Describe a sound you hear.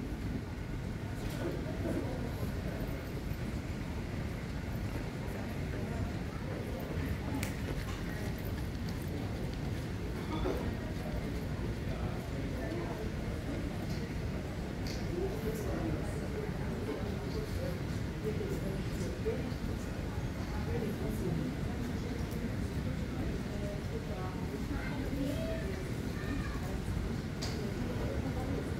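Footsteps tap on a hard floor in a large, echoing hall.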